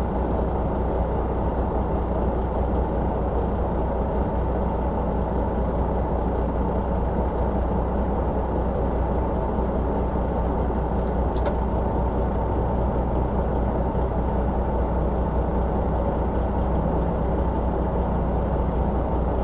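Cars drive past nearby.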